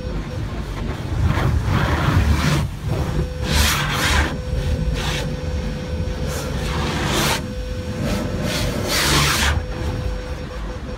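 Water spatters and streams over a car's windscreen.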